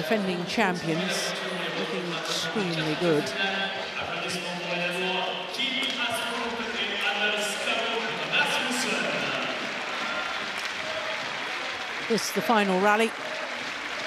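Rackets strike a shuttlecock back and forth in a rally.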